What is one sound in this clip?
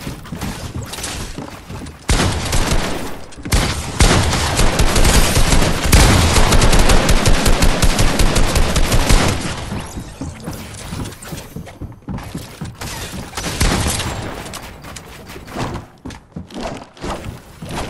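Wooden building pieces clatter into place.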